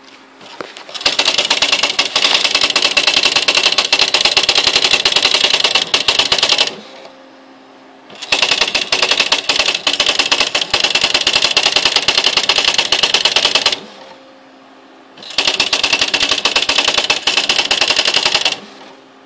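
An electronic typewriter prints automatically in rapid bursts of clattering strikes.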